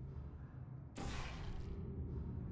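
A portal gun fires with a sharp electronic burst.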